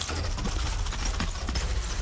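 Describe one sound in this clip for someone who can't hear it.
A weapon strikes a monster in a video game.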